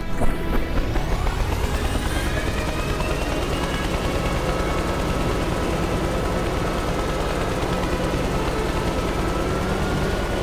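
A helicopter engine whines up in pitch and settles into a steady hum.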